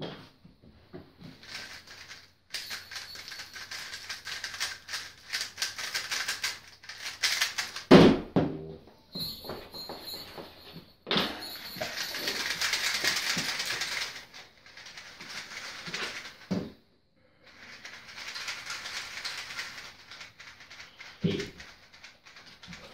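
Plastic puzzle cubes click and rattle rapidly as they are twisted.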